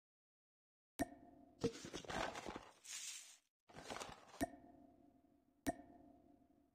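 Sharp interface clicks sound a few times.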